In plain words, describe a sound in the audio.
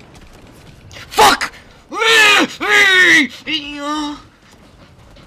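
A young man shouts and yells loudly into a headset microphone.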